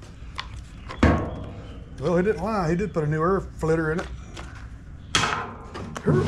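A plastic cover clicks and snaps.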